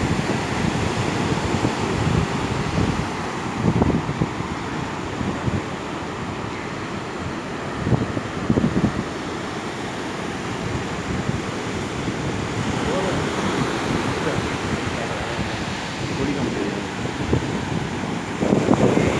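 Waves break and wash steadily onto a beach.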